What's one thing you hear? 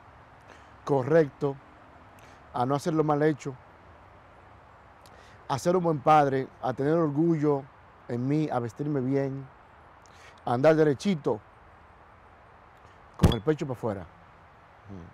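A young man speaks calmly and closely into a microphone, with pauses.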